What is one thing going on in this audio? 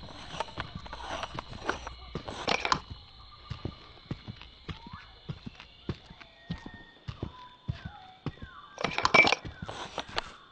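Quick footsteps tap steadily on stone.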